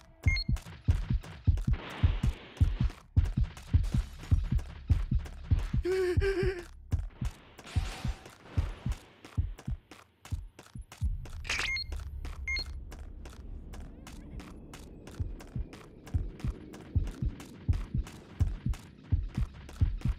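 Quick running footsteps thud over hard ground.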